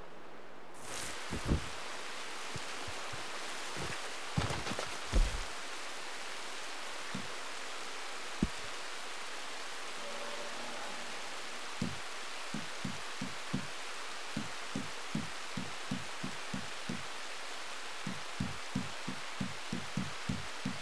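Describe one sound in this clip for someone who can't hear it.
Steady rain falls and patters all around.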